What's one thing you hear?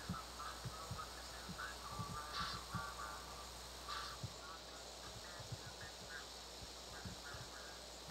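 Keys tap on a laptop keyboard.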